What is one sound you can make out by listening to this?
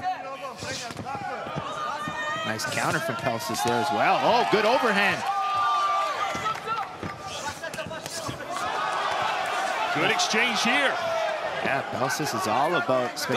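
Punches and kicks thud against a fighter's body and gloves.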